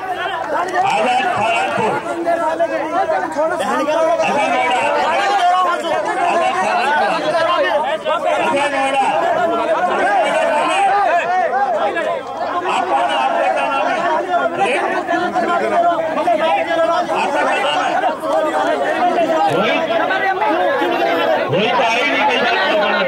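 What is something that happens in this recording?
A large crowd of spectators talks and murmurs outdoors.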